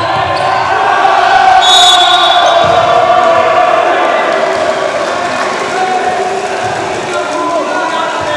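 Young men shout and celebrate loudly.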